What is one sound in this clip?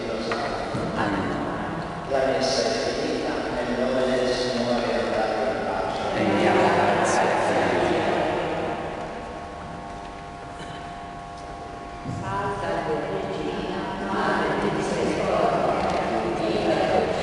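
An elderly man's voice rings out in an echoing church.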